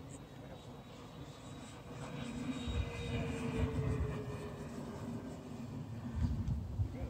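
A model airplane engine drones high overhead, rising and falling in pitch.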